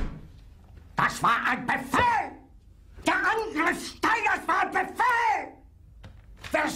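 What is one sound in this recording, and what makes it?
An elderly man shouts angrily, close by.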